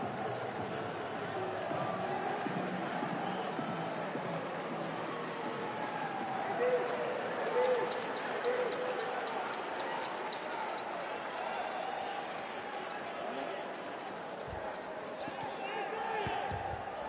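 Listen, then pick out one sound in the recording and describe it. A crowd murmurs and chatters steadily in a large echoing arena.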